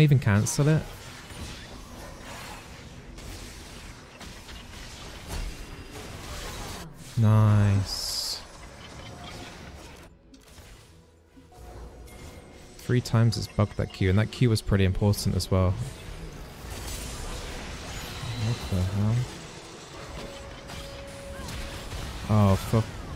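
Video game sound effects of clashing spells and hits play.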